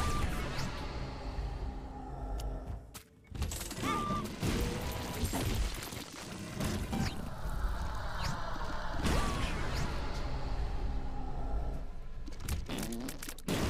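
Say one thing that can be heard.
Cartoon bombs explode with heavy booms in a video game.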